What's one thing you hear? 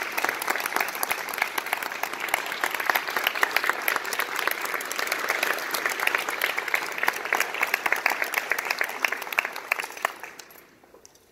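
A man claps his hands close by.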